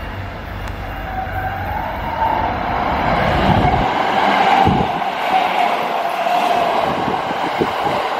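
Train brakes squeal with a high whine.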